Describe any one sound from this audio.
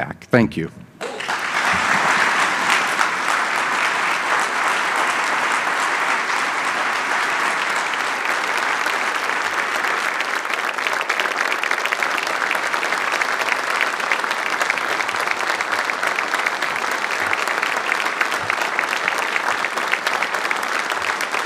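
A large crowd applauds loudly and steadily.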